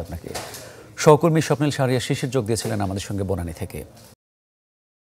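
A young man speaks calmly and clearly into a microphone.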